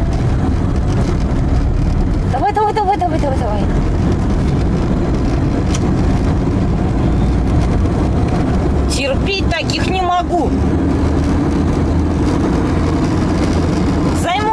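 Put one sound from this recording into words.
A car's engine and tyres rumble, heard from inside the cabin while driving along.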